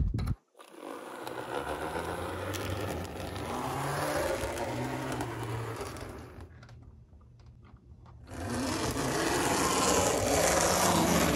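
A model train rumbles and clicks along its tracks.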